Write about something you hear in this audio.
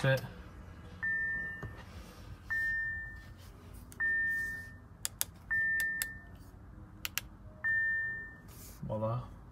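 A car's warning chime beeps several times at a steady pace.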